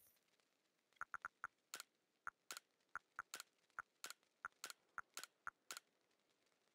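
Soft electronic blips tick quickly as a menu cursor moves from item to item.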